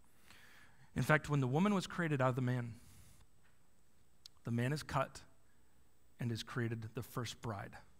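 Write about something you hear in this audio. A man speaks calmly through a microphone, with pauses.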